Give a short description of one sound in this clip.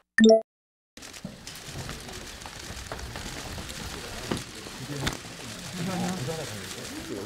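A crowd of reporters murmurs and jostles close by.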